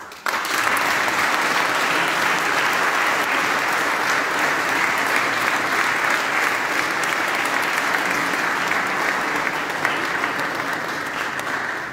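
A women's choir sings together in a large echoing hall.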